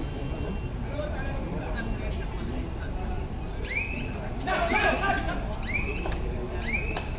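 A crowd chatters and cheers in a large echoing space.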